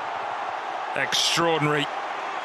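A young man shouts in triumph.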